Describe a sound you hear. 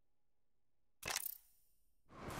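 A menu click sounds once.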